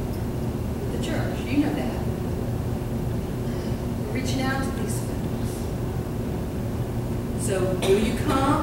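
A woman speaks calmly through a microphone in a large room.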